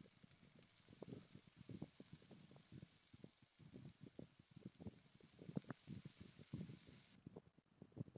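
Salmon sizzles in a frying pan.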